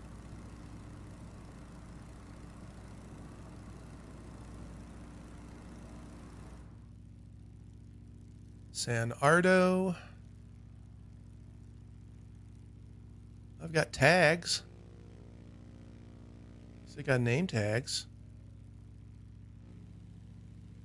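A small propeller plane's engine drones steadily.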